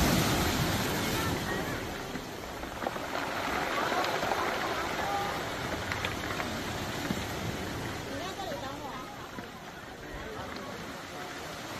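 Sea waves break and wash over a pebbly shore.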